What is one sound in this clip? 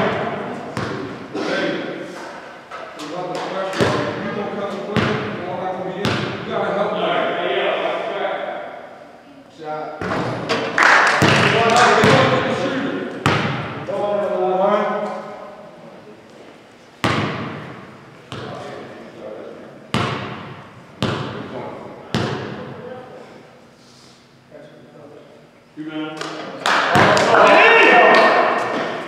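Young men talk and call out across the hall.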